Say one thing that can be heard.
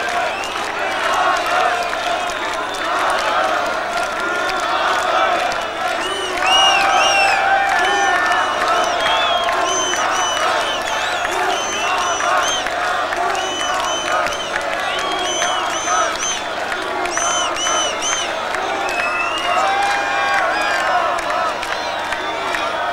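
A large crowd cheers, whistles and shouts in a big echoing hall.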